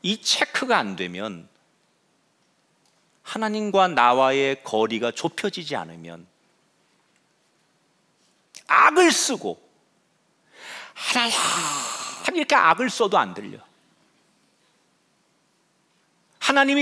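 A man speaks with animation through a microphone, with pauses between phrases.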